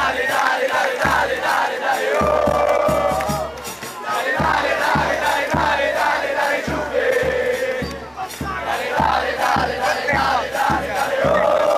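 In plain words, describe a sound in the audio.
Young men shout and sing right beside the microphone.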